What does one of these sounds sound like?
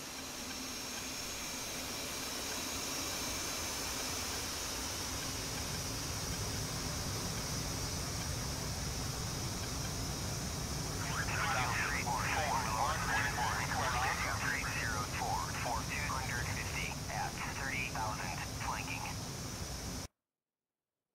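A jet fighter's engines whine at idle.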